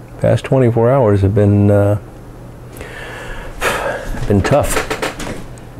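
A man exhales smoke with a soft breathy puff.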